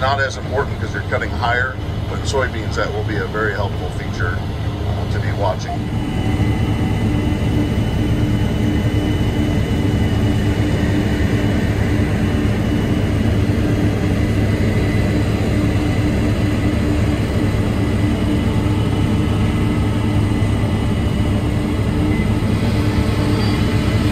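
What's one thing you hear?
A combine harvester's engine drones steadily from inside the cab.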